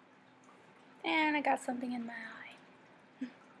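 A young woman speaks briefly and close to a microphone.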